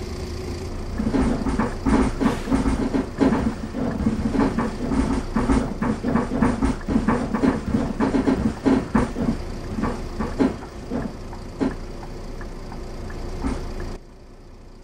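Footsteps thump on the steps and floor of a bus as passengers board.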